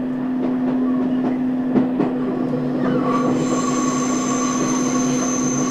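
A train hums and rumbles steadily along the tracks.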